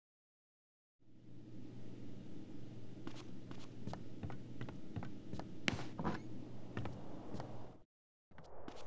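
Footsteps tap quickly across a wooden floor.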